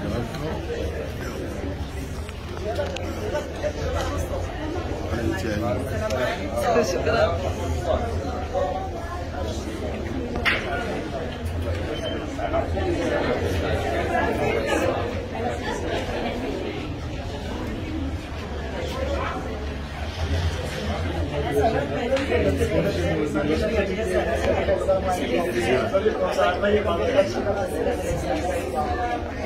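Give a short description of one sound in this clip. A crowd of men and women talks and murmurs all around, close by.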